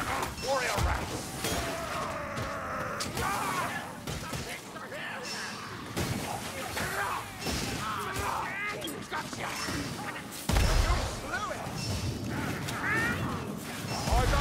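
Guns fire in sharp, loud shots.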